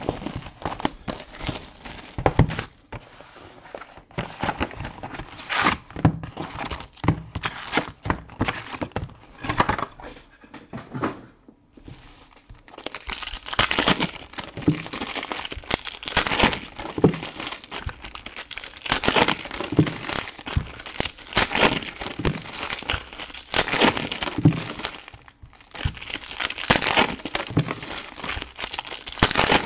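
Plastic wrappers crinkle and rustle as they are handled.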